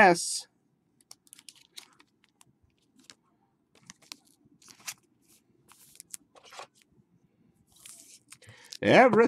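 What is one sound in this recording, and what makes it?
Trading cards tap and rustle as they are handled.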